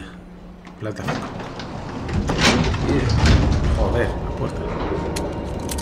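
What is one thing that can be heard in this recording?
Elevator doors slide shut with a low rumble.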